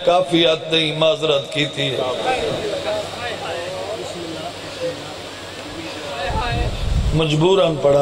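An elderly man speaks with passion through a microphone and loudspeakers.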